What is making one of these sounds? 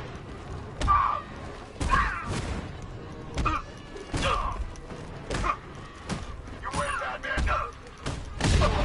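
Men grunt and cry out as they are struck.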